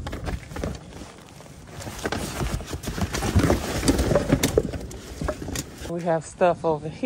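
Cardboard and plastic rustle and scrape as rubbish is pushed into a bin.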